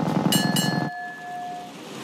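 A motorcycle engine hums.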